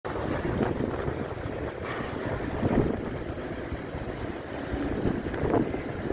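A motorbike engine rumbles nearby.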